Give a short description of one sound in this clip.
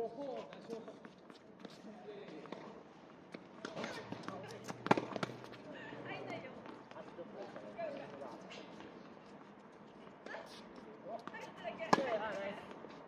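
Tennis shoes squeak and scuff on a hard court.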